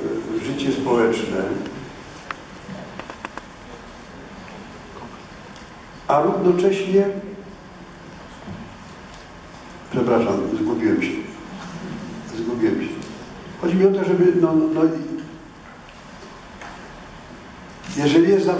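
An elderly man speaks calmly into a microphone in a large echoing hall, with pauses.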